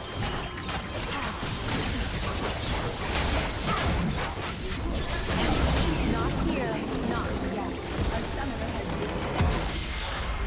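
Magic spells crackle and whoosh in rapid bursts.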